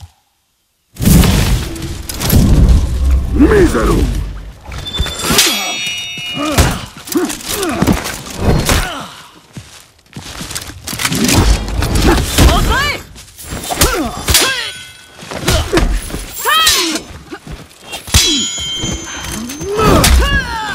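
Steel blades clash and ring.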